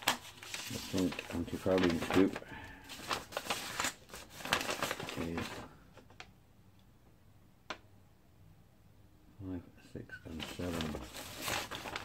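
Paper rustles as a sheet of instructions is handled and unfolded.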